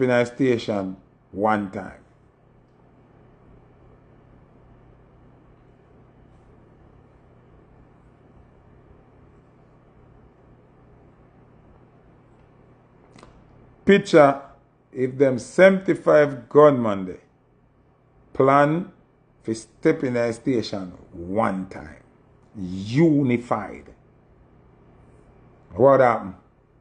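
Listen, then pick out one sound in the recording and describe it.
A man talks with animation close to a microphone, with pauses.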